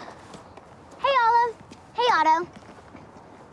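Another young girl answers in a lively voice.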